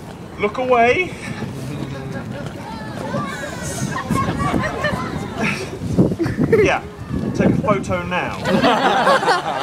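A crowd of people chatter and call out nearby outdoors.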